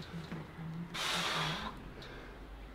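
A young man exhales forcefully while straining.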